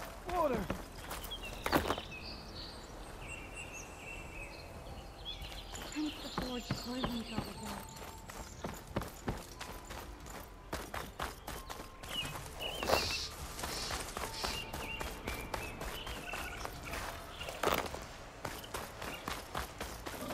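Footsteps run quickly over dirt and dry grass.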